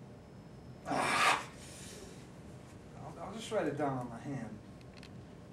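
A young man laughs softly nearby.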